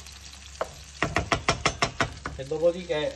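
A spatula scrapes and pushes food around a pan.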